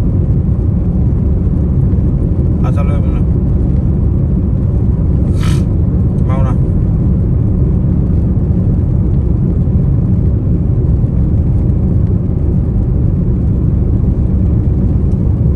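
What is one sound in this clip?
A car engine hums steadily from inside the car.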